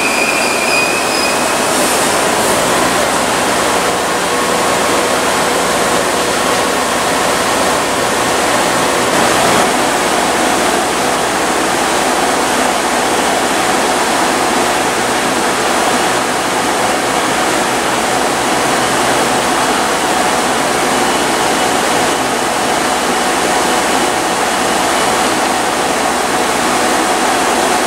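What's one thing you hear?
A diesel train engine hums steadily close by.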